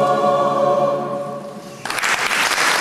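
A choir of men and women sings a final chord that rings out and fades in a reverberant hall.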